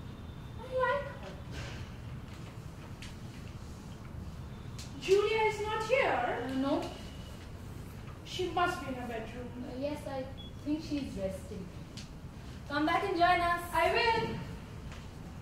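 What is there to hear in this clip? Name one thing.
Young women speak expressively in a stage play, heard from a little distance in a room.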